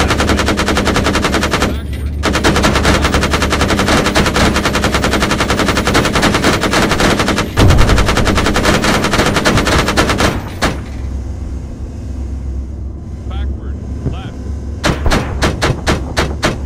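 A rapid-fire cannon rattles in long, fast bursts.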